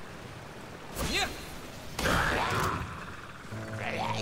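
A game character slams into the ground with a heavy whooshing blast.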